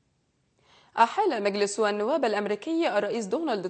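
A young woman speaks calmly into a microphone, reading out news.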